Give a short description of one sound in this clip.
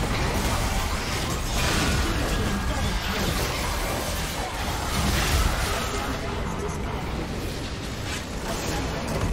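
Game spell effects crackle, whoosh and clash in a busy battle.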